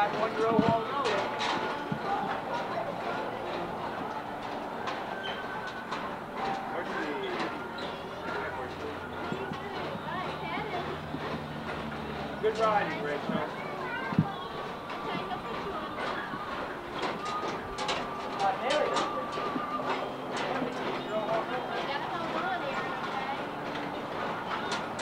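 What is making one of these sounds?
Several people talk in the background outdoors.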